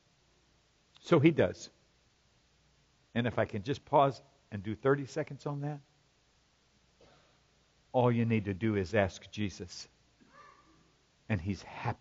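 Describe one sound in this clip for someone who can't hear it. A man speaks calmly into a microphone, heard through a loudspeaker in a large hall.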